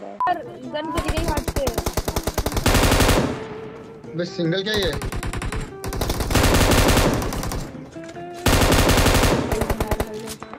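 Rapid gunfire bursts from a game.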